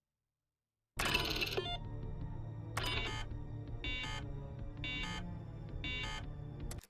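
A computer terminal sounds a harsh error buzz.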